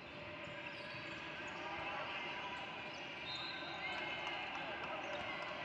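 A crowd of spectators chatters in the background.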